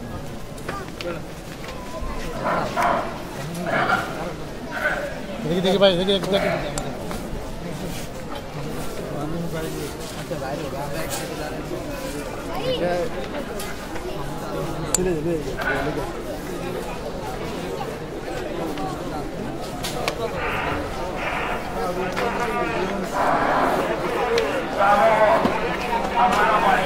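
A crowd of men talks and calls out nearby outdoors.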